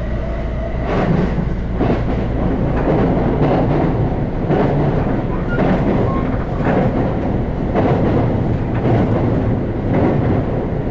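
Train wheels clatter loudly over a metal bridge.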